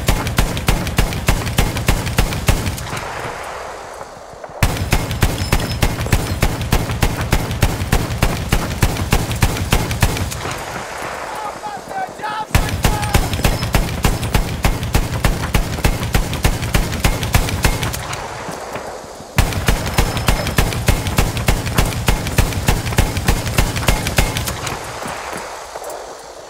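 A heavy machine gun fires in rapid bursts, with pauses between them.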